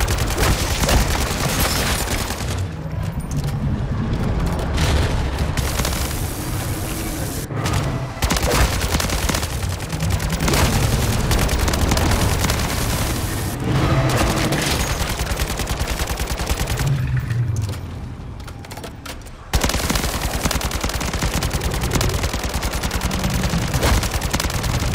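An automatic rifle fires rapid bursts at close range.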